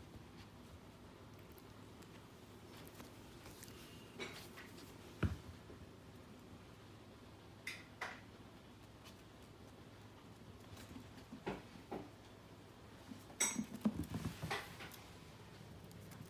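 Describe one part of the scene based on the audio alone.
Small paws patter and scrabble on a wooden floor.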